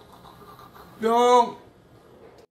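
A young man exclaims loudly in a high voice.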